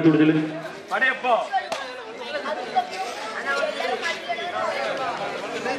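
A man speaks loudly to the children.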